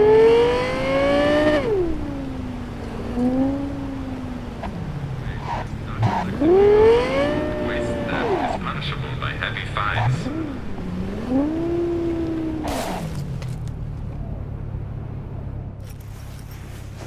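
A sports car engine revs up and down as the car speeds along a road.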